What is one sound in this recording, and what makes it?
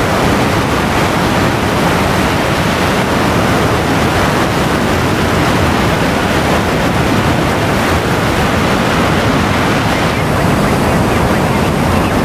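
A jet engine roars steadily at full power.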